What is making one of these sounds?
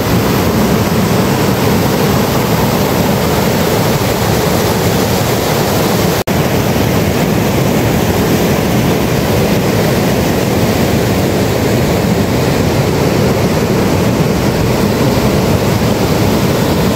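A mountain stream rushes loudly over rocks nearby.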